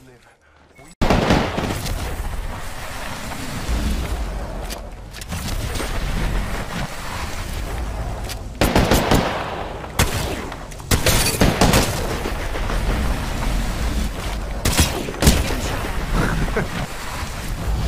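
A young man talks into a headset microphone with animation.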